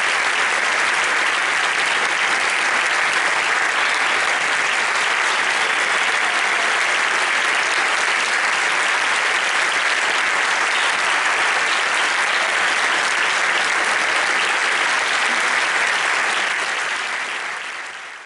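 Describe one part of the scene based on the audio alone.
An audience claps loudly and steadily in a large hall, fading toward the end.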